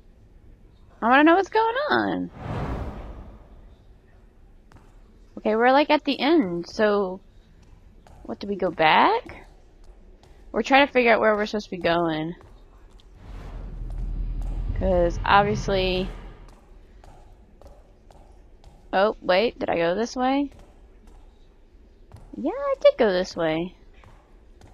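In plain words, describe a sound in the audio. A young woman talks into a microphone in short bursts, close by.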